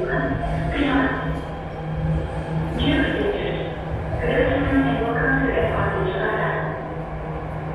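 A train rumbles past steadily.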